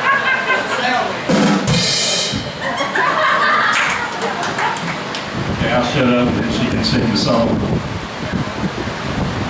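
A live band plays drums and guitar loudly.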